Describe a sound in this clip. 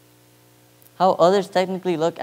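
A young man speaks clearly into a microphone, heard through loudspeakers in a large hall.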